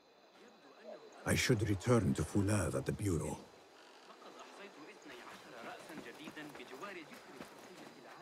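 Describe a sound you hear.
Footsteps walk on a stone street.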